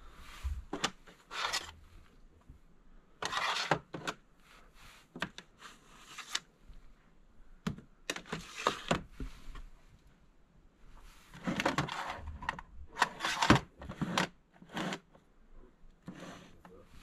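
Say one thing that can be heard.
Plastic game cases clack and rattle as a hand pulls them from a shelf and pushes them back.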